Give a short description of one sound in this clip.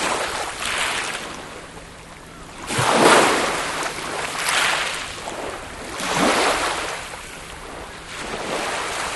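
Small waves break and wash over a pebbly shore in steady surges.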